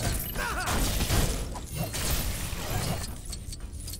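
Coins jingle as they are collected.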